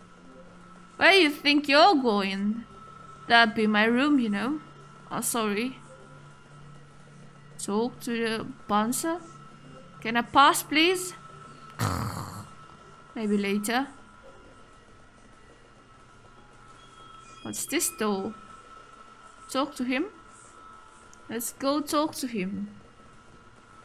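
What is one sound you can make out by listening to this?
A young woman reads out lines close to a microphone, speaking with animation.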